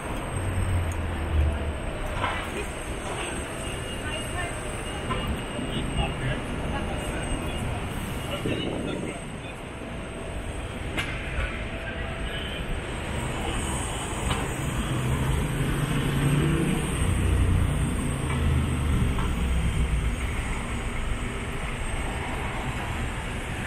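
Outdoors, city traffic hums steadily in the distance.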